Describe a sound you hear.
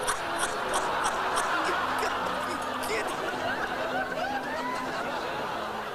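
A bearded man laughs heartily outdoors.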